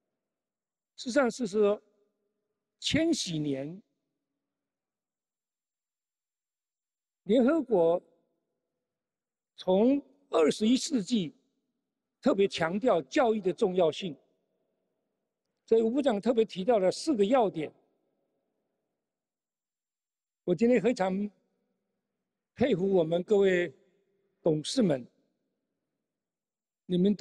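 An elderly man speaks slowly and deliberately into a microphone, with pauses between phrases.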